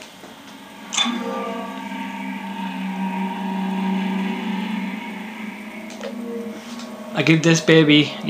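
A low, eerie drone hums steadily.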